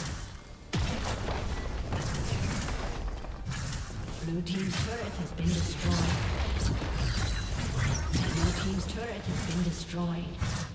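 Game spell blasts and weapon hits crackle rapidly in a busy battle.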